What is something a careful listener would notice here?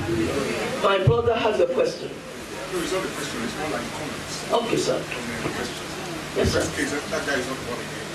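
A woman speaks with energy into a microphone, heard through loudspeakers in an echoing hall.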